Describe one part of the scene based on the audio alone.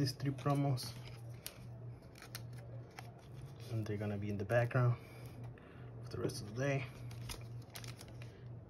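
Plastic-coated cards rustle and tap softly as they are handled.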